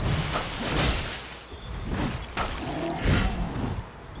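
Heavy blades swing and strike with sharp impacts.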